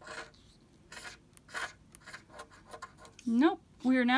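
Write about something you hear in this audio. A coin scrapes rapidly across a scratch card.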